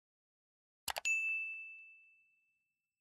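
A short bell chime rings and fades.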